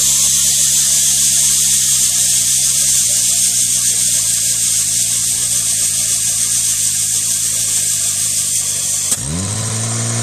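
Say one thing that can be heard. A portable pump engine runs with a loud, steady hiss.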